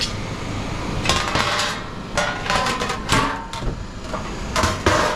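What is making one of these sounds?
A metal baking tray clanks and rattles as it is handled.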